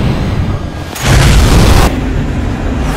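A jet whooshes past with a rising roar.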